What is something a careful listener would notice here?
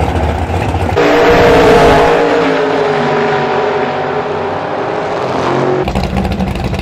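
A V8 drag car launches at full throttle and roars off down the strip, fading into the distance.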